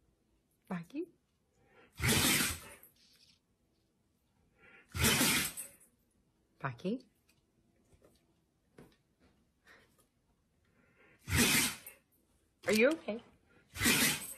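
A large dog howls and grumbles in short vocal bursts close by.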